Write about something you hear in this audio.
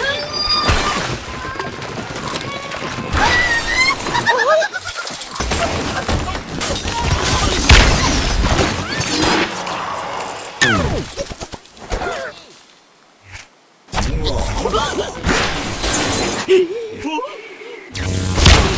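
A slingshot twangs as a bird is launched.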